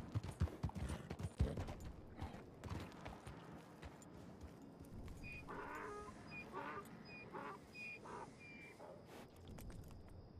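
Horse hooves thud on a dirt trail.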